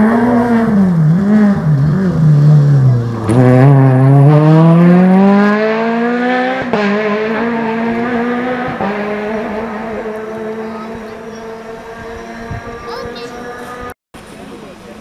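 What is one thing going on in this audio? A rally car engine roars and revs loudly as the car speeds past and fades away.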